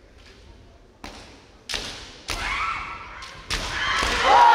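Bamboo swords clack sharply together.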